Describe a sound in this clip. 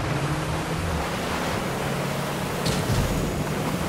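Water splashes and sprays against a boat's hull.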